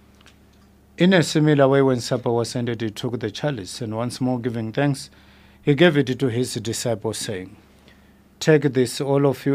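A man speaks slowly and solemnly into a close microphone.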